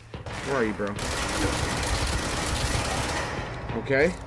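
A gun fires rapidly in a long burst.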